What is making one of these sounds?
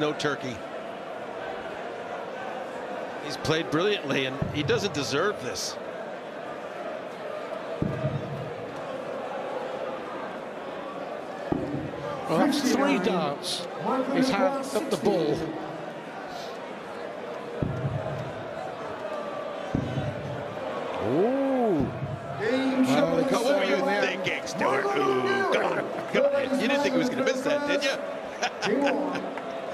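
A large crowd murmurs and chants in a big echoing arena.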